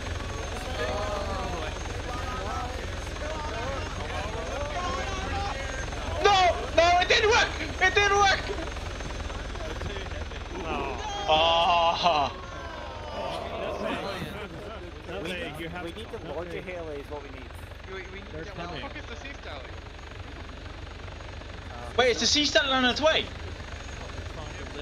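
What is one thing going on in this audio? A helicopter's engine and rotor hum steadily.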